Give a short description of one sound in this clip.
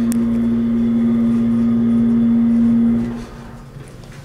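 An elevator hums steadily as it moves, then stops.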